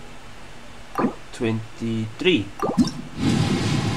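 A soft chime sounds as a menu button is clicked.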